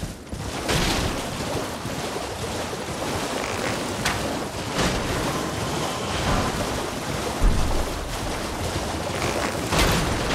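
Water splashes loudly as a horse gallops through shallows.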